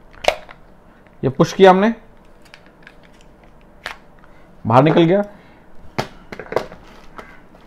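Hard plastic and metal parts click and clack as they are handled.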